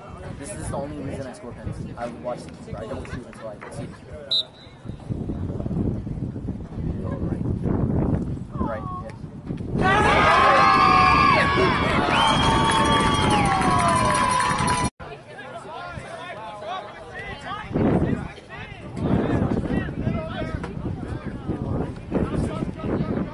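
Young men shout across an open field.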